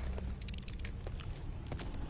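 A zombie growls close by.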